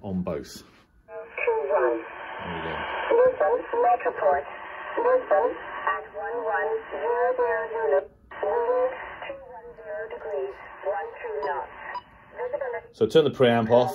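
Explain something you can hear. A man talks through a small radio loudspeaker, with a thin, tinny tone.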